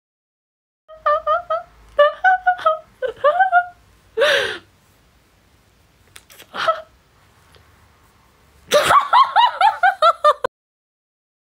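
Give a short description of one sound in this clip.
A young woman giggles and laughs behind her hand.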